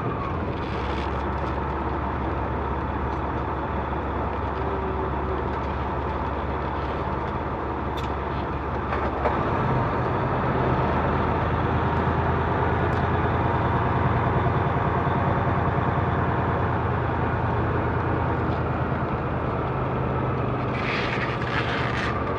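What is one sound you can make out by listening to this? Tyres hum on pavement.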